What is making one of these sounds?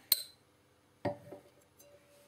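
A glass is set down on a hard surface with a soft knock.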